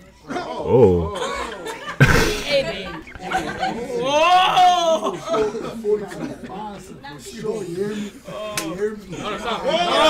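A young man speaks with excitement close by.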